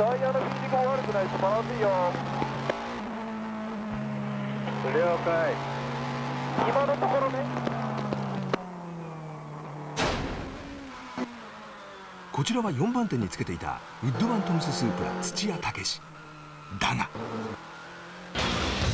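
A race car engine roars steadily from inside the cockpit.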